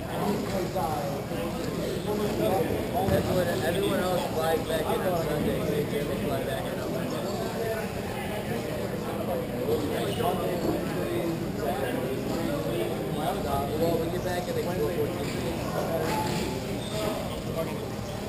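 Young players call out in the distance in a large echoing hall.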